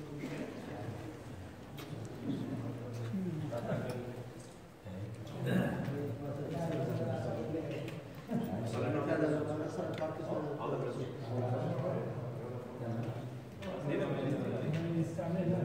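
A crowd of men murmur and chant close by, echoing in a large hall.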